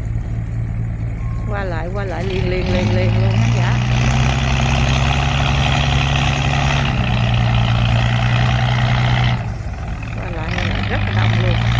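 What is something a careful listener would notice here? A boat engine rumbles steadily nearby.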